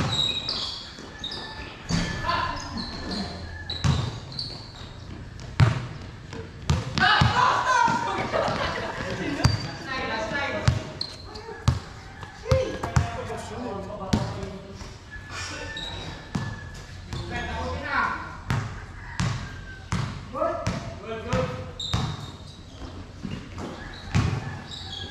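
A basketball bounces on a hard court, echoing under a roof.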